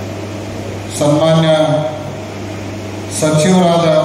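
A man speaks into a microphone over loudspeakers, with calm pauses between phrases.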